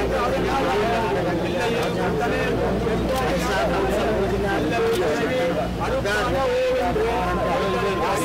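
A crowd of men and women talks and murmurs all around.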